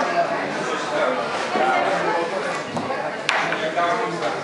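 A glass clinks as it is set down on a table.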